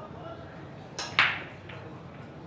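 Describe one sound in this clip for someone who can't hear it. A cue ball smashes into a rack of balls with a sharp crack.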